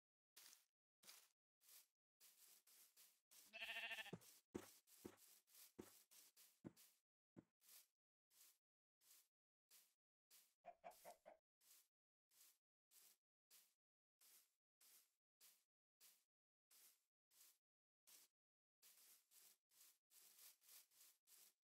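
Footsteps crunch steadily through grass.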